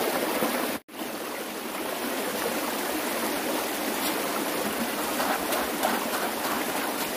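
Shallow water splashes and trickles steadily over stones.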